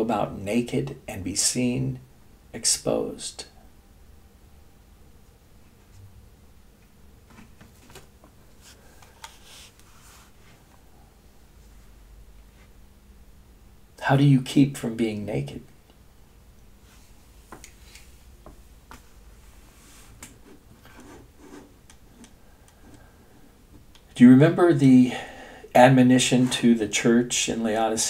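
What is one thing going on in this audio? An elderly man speaks calmly and close up, in bursts with long pauses.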